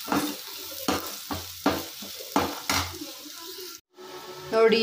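A metal spoon scrapes and clinks against a frying pan.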